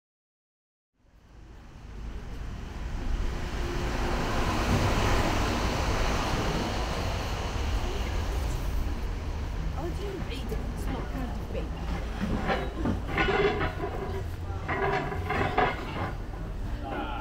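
Traffic rumbles along a nearby street.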